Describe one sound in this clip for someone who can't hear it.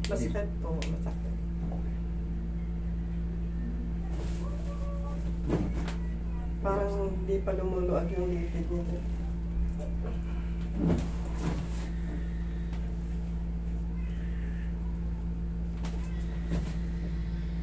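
Joints crack with sharp pops.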